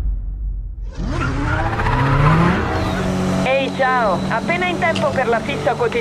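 A car engine revs and roars at speed.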